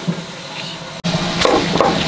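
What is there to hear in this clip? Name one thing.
A knife chops through vegetables on a wooden board.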